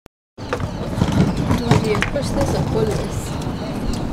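A door is pushed open.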